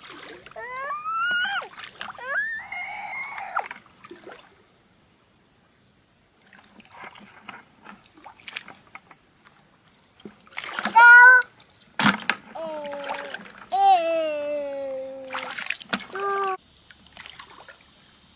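Water splashes and sloshes as a bucket is dipped into a stream.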